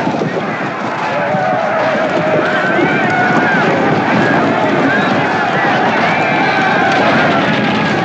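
Many horses gallop across open ground.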